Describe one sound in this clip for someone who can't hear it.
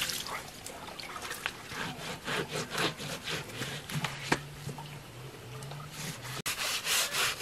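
Water splashes and trickles as it is scooped and poured.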